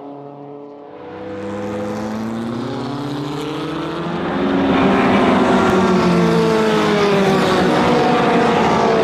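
Vintage racing car engines drone and rise as the cars approach.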